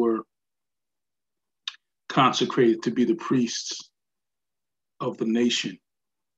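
A middle-aged man speaks calmly over an online call, in short bursts with pauses.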